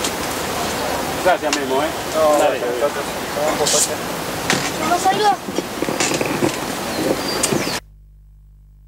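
A man speaks calmly, close by, outdoors.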